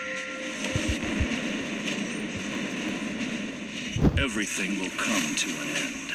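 Weapons clash and magic blasts burst in a fast fight.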